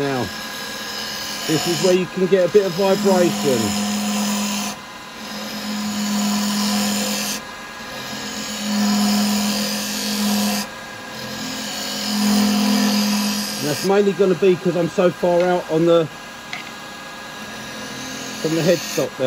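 A wood lathe hums steadily.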